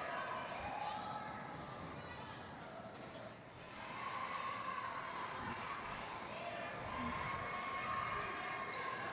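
Roller skate wheels rumble across a hard floor in a large echoing hall.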